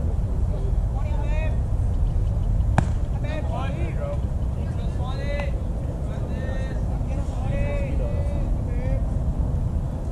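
Young men shout and cheer from across an open field.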